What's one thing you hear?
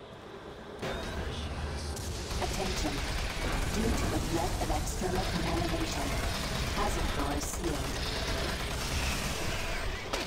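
Gunshots fire rapidly in a game.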